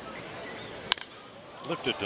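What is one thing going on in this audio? A wooden bat cracks against a baseball.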